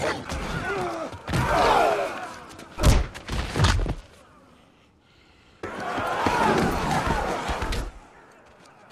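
A crowd of men shouts and roars.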